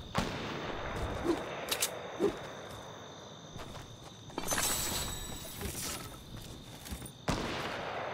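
Quick footsteps run over grass.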